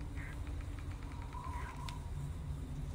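Soft, quick menu ticks click as a list scrolls.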